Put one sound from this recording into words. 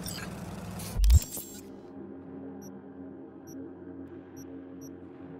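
A menu opens with a short electronic whoosh and soft beeping tones.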